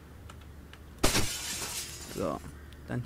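Window glass shatters loudly.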